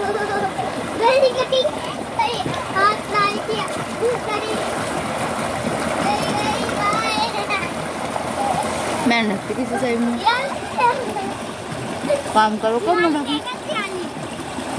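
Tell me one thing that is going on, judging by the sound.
Young children call out in high voices nearby.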